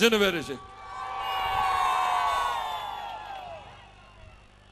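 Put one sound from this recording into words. A large crowd cheers and whistles.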